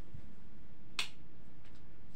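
A light switch clicks off.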